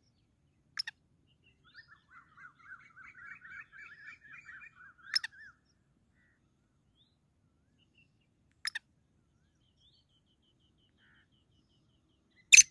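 A caged black francolin calls outdoors.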